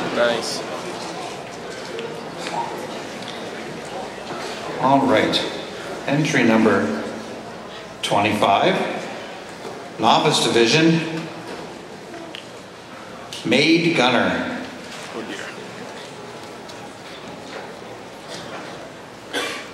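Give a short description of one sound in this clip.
A man speaks theatrically into a microphone in a reverberant hall.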